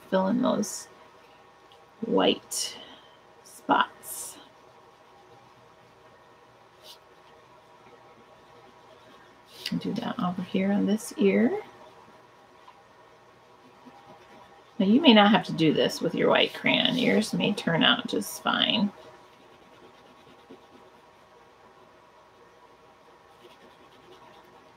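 A crayon scratches softly on paper.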